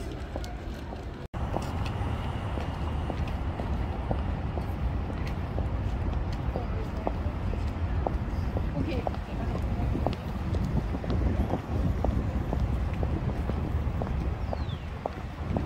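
City traffic rumbles low in the background outdoors.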